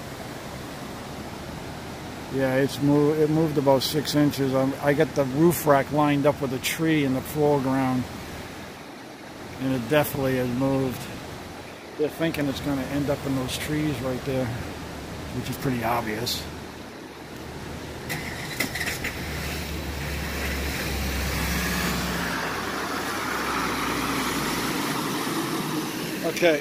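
Floodwater rushes and churns steadily.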